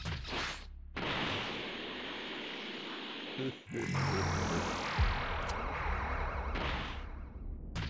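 A rushing whoosh of energy roars and fades.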